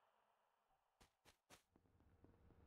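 Short electronic clicks sound as a game menu opens.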